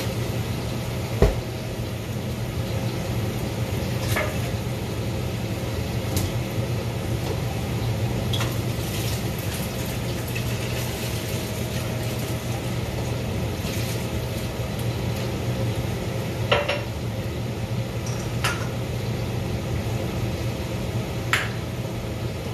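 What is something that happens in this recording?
Water simmers in a pot with a steady low rumble.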